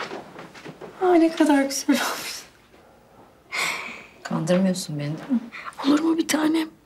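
A young woman speaks emotionally, close by.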